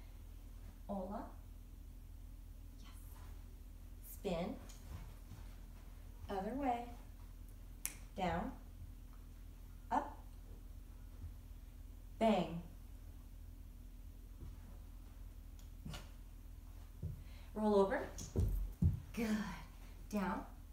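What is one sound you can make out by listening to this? A young woman gives short, cheerful commands nearby.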